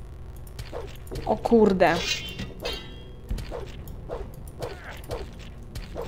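A blade swishes through the air in quick strokes.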